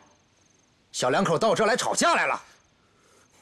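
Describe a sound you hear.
An adult man speaks with animation.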